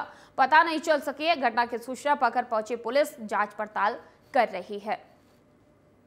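A woman speaks with emotion, close by.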